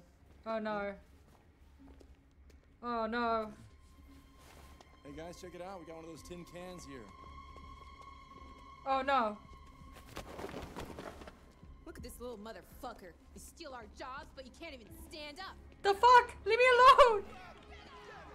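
A young woman exclaims in alarm close to a microphone.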